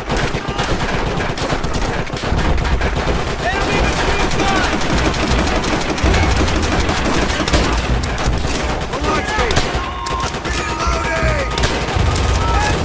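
Gunfire crackles in rapid, dense bursts.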